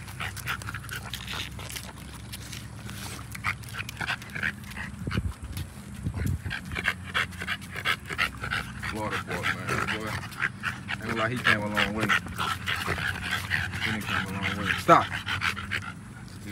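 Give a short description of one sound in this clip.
Dog claws click and scrape on concrete.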